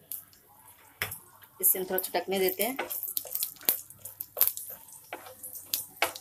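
Seeds crackle and pop in hot oil.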